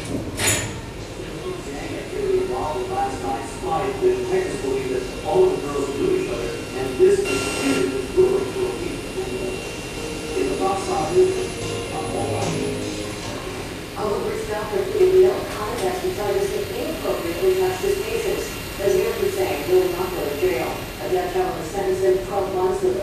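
Warbling electronic tones play through loudspeakers.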